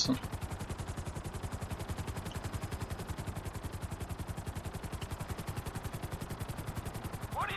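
Helicopter rotor blades chop rapidly and steadily.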